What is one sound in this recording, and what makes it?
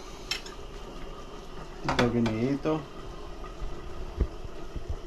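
A metal utensil clinks against a pot.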